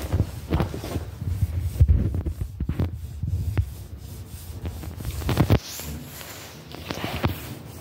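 A cloth rubs and squeaks against a smooth panel.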